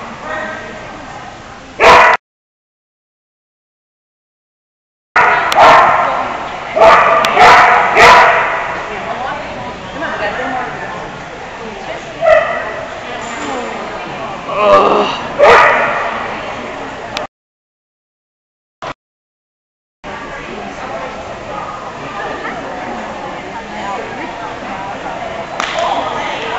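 A woman calls out commands loudly in a large echoing hall.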